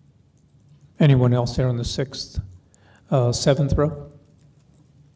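A man speaks briefly through a microphone in a room.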